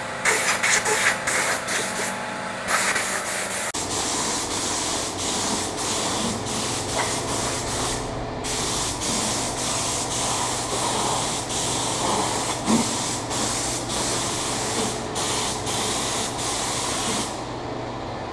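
A spray gun hisses loudly in short and long bursts.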